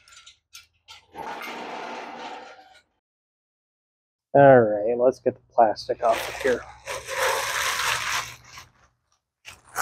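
Plastic sheeting crinkles and rustles.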